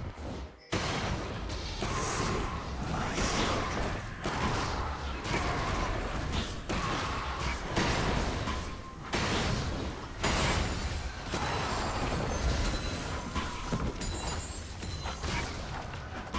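Fighting sound effects of a video game crackle and whoosh.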